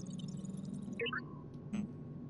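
A short electronic chime rings as the counter stops.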